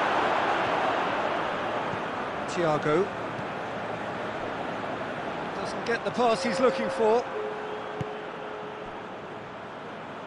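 A large crowd roars steadily in a stadium, slowly fading.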